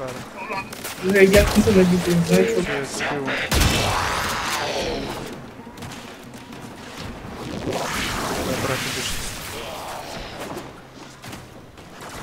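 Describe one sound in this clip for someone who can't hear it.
Footsteps run quickly over snowy ground.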